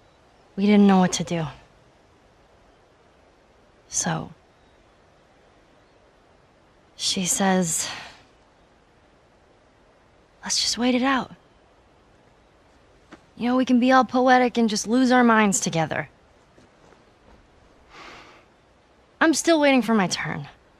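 A young girl speaks quietly and hesitantly, in short bursts with pauses.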